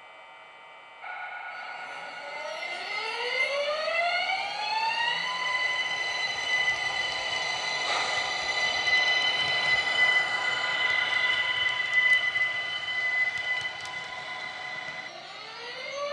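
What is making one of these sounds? An electric train motor whines, rising in pitch and then holding a steady tone.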